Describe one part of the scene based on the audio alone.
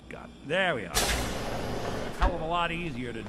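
A heavy sliding door rumbles open with a hiss.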